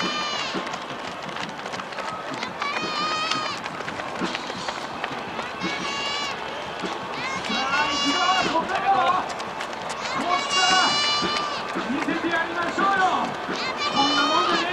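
Many runners' footsteps patter on a paved road.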